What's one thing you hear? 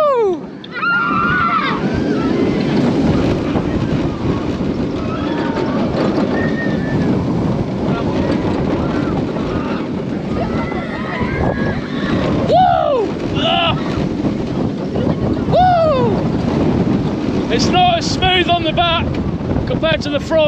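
Wind roars loudly past the microphone on a fast ride.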